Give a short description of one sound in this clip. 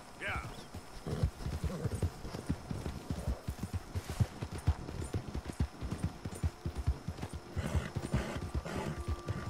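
A horse's hooves thud steadily at a gallop over grass.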